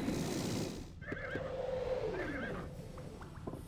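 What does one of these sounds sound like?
A magic spell rings out with a warbling chime.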